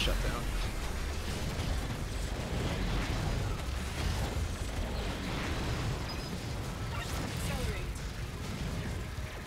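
Rapid electronic gunfire and explosions crackle and boom in a video game.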